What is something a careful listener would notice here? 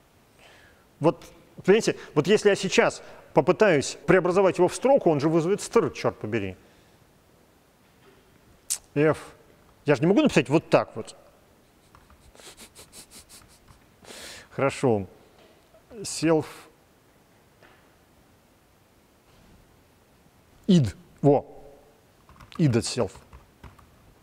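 An elderly man talks calmly into a microphone, in short bursts with pauses.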